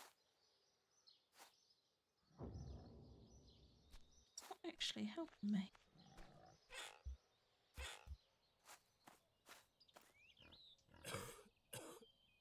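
Footsteps crunch on dry grass and earth.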